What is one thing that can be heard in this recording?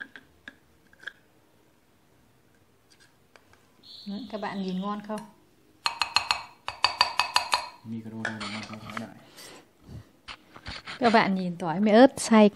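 A plastic lid clinks and knocks against a glass bowl.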